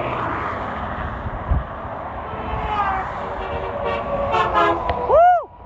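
Traffic roars steadily along a highway outdoors.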